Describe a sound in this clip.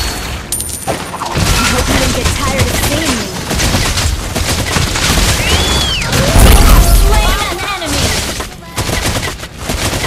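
Game characters clash with sharp hits and blasts.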